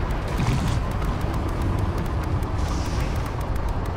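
A vehicle engine rumbles nearby.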